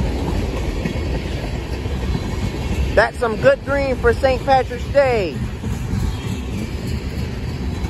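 A freight train rumbles past close by, its wheels clattering steadily on the rails.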